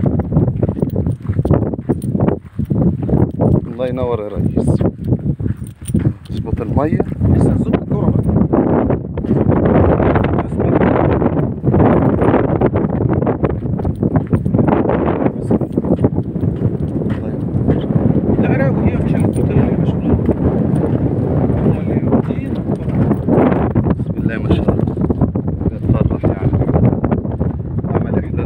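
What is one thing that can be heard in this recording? Wind blows across open ground, rumbling against the microphone.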